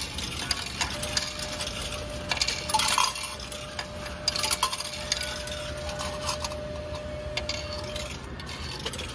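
A ticket machine sounds a steady electronic tone.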